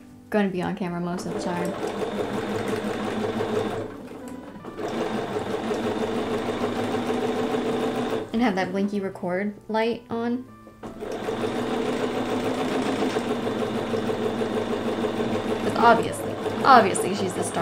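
A sewing machine stitches with a steady whirring hum.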